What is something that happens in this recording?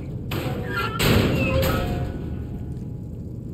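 A wooden crate topples and crashes to the ground.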